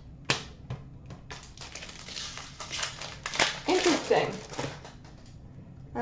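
A plastic wrapper crinkles and rustles in someone's hands.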